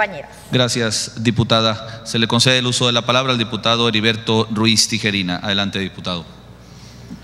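A man speaks steadily through a loudspeaker in a large echoing hall.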